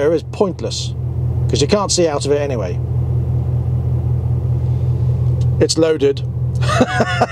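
A vehicle engine idles with a steady low hum, heard from inside the cab.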